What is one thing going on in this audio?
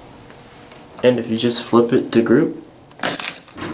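A bunch of keys jingles.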